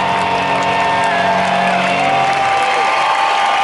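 A rock band plays a final loud chord that rings out.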